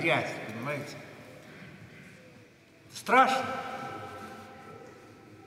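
An elderly man chants in a deep voice through a microphone, echoing in a large hall.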